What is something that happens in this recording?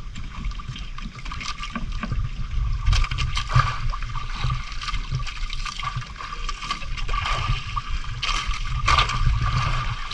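Wind blows across the open sea.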